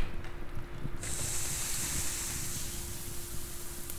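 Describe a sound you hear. A piece of fish sizzles on a hot grill.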